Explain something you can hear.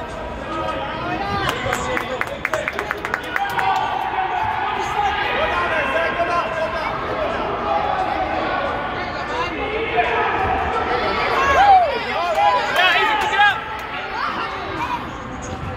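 Children shout and call out excitedly in a large echoing gym.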